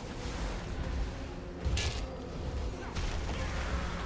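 Fire roars in a large blast.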